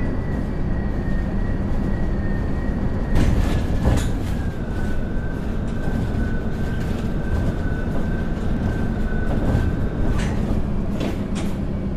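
Bus doors hiss and clunk as they open and close.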